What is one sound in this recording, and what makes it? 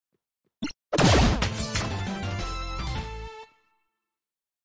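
A retro video game plays a short victory jingle.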